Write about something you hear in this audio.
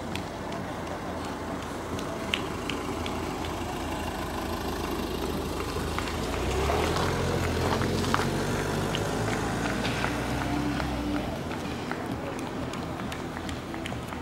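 Running footsteps patter on pavement.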